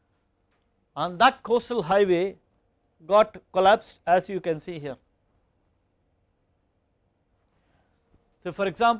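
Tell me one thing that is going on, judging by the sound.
A middle-aged man speaks calmly through a microphone, in short phrases with pauses.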